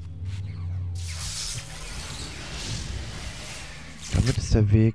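A magic portal shimmers with a bright, sparkling hiss.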